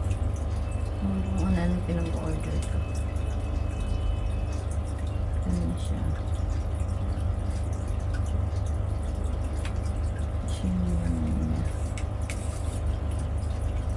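A plastic lid clicks open and shut.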